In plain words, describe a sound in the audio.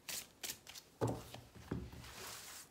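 A card slaps down on a cloth-covered table.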